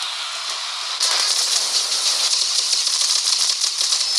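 A burst of rapid crackling gunfire hisses loudly.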